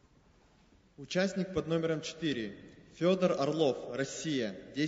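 A young man reads out calmly into a microphone in a large echoing hall.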